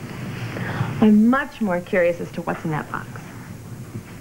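A woman laughs and speaks playfully nearby.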